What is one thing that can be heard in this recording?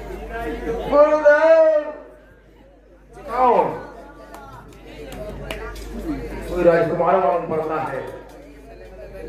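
A man sings and declaims loudly through a microphone, carried over loudspeakers.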